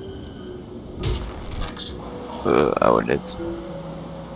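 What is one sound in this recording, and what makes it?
A gun clanks and clicks as it is raised and readied.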